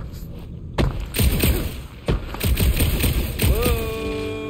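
A blaster fires several shots.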